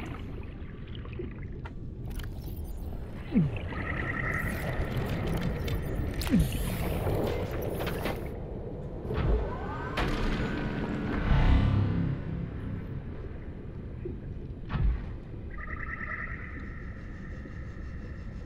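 A low underwater rumble drones steadily throughout.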